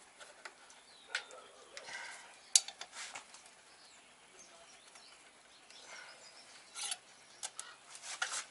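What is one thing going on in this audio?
Metal tools click and clatter against engine parts.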